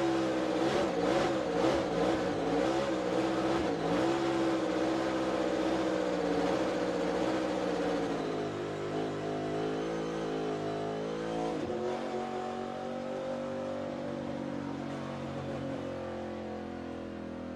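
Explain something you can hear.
A race car engine roars at high speed inside the car, slowly easing off.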